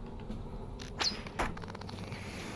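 A weapon strikes with two sharp hits.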